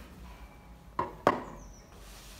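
A hammer taps lightly on wood twice.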